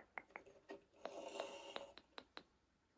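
A ribbed plastic tube crinkles as it is stretched.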